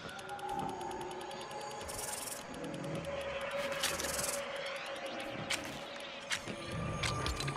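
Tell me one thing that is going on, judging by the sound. Short game clicks tick as building pieces are picked from a menu.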